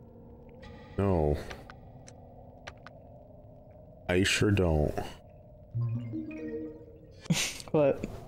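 A bright electronic chime sounds as a game saves.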